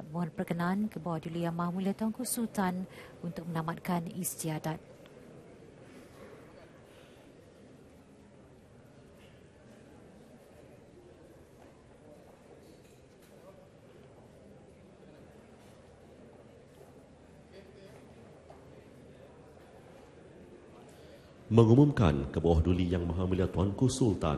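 A man speaks formally through a microphone in a large echoing hall.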